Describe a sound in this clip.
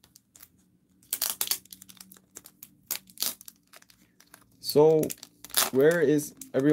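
A plastic wrapper crinkles and rustles as hands handle it.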